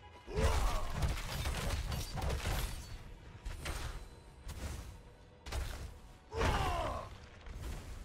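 A heavy blast booms and rings out.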